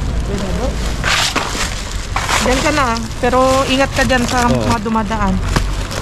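Plastic bags rustle and crinkle as hands rummage through them.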